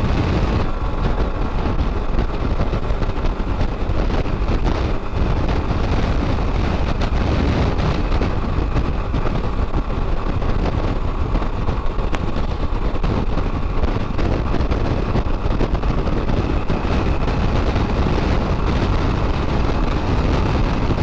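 Wind roars and buffets loudly outdoors.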